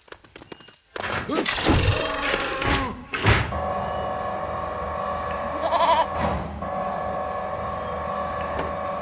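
Plastic toy bricks clatter and snap together.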